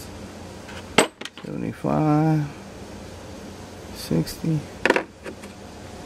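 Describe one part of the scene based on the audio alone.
Small metal parts clink against each other in a hand.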